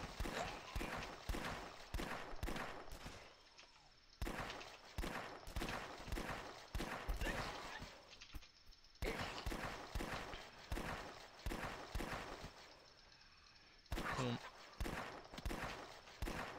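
Gunshots fire in rapid bursts with short pauses.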